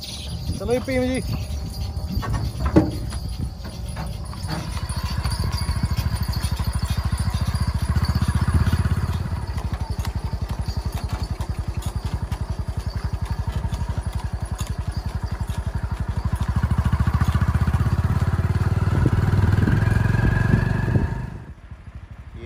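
Cart wheels rumble over the road.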